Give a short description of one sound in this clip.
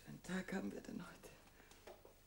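A young woman speaks.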